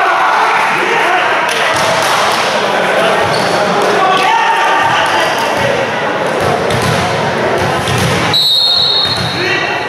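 Young men shout and call to each other in a large echoing hall.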